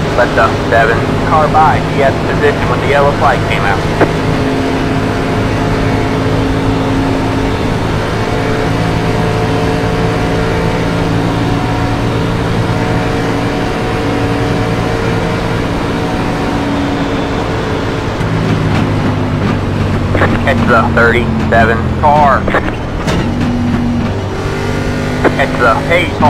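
A race car engine drones steadily at high speed, shifting pitch now and then.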